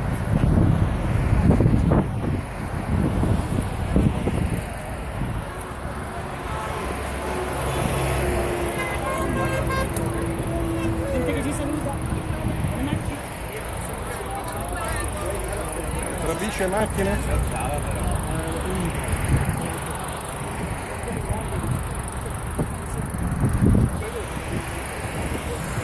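A crowd of adults chatters nearby outdoors.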